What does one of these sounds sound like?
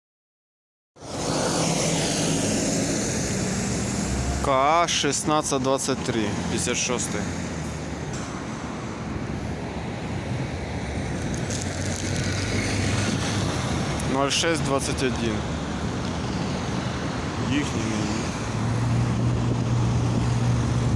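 Traffic hums along a street outdoors.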